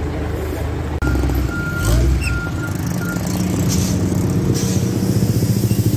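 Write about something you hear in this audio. Large truck engines rumble steadily.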